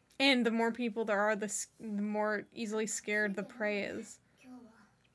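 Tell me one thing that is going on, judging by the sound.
A young woman speaks calmly close to a microphone.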